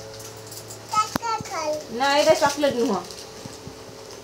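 A young child speaks in a high voice nearby.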